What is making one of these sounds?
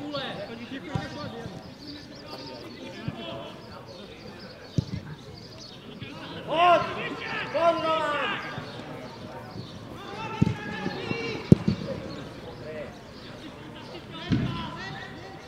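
A football is kicked with dull thuds outdoors.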